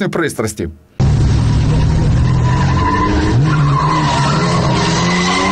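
Tyres squeal on tarmac.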